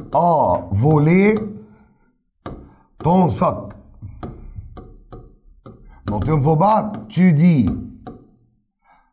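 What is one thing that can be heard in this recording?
A man speaks with animation close to a microphone, in bursts with short pauses.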